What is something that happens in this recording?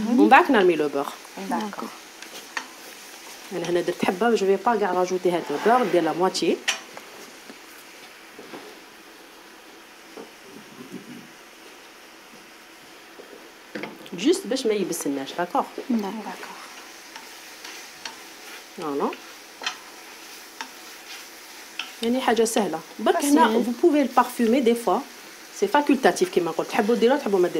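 A wooden spoon scrapes and stirs in a frying pan.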